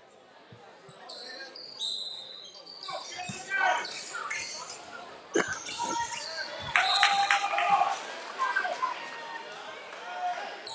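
Sneakers squeak sharply on a wooden court in an echoing gym.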